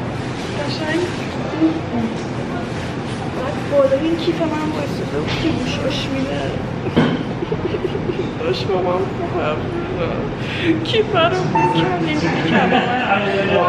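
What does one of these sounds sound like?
A young woman talks and sings close by, with animation.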